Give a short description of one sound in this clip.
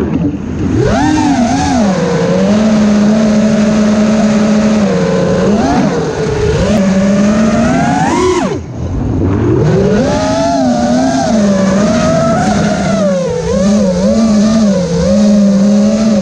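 A small drone's motors whine loudly and rise and fall in pitch as it speeds and swoops.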